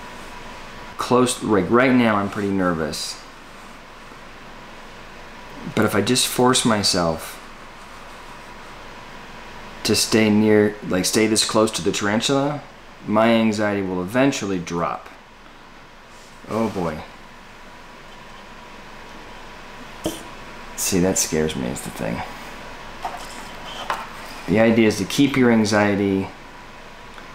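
A man talks calmly close by, in short bursts with pauses.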